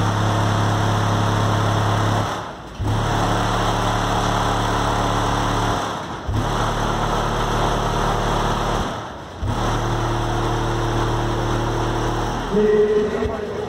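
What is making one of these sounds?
A car sound system blasts loud, steady low test tones in bursts with short pauses.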